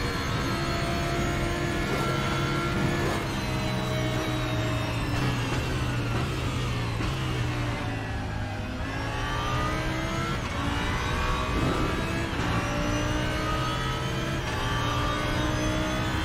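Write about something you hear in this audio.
A race car engine roars, its pitch rising through the gears and dropping as it slows for a corner.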